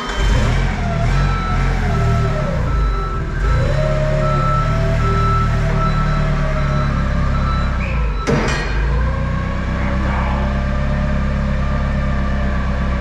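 A forklift engine rumbles and whines as the forklift drives off.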